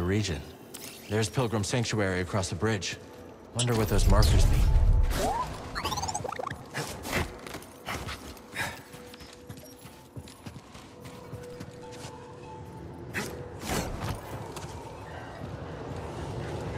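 Footsteps hurry over stone.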